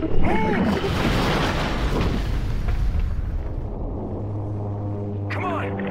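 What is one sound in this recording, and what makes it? A heavy underwater blast rumbles deeply.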